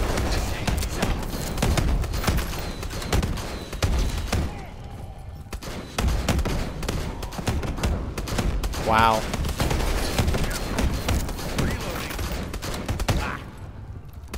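Gunshots blast in rapid bursts.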